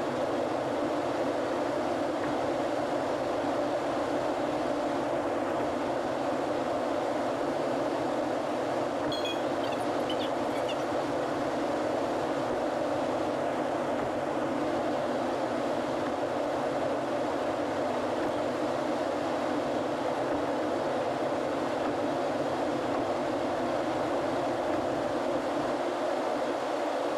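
Tyres roar steadily on a highway as a car drives at speed.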